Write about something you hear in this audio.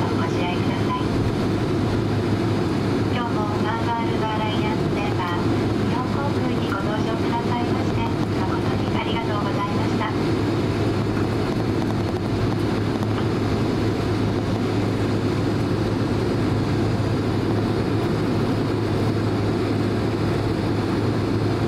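An aircraft engine hums and rumbles steadily while taxiing.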